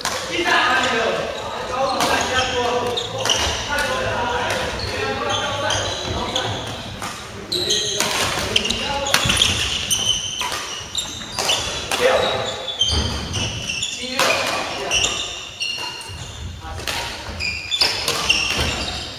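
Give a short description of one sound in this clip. Shuttlecocks are struck sharply with rackets, echoing in a large hall.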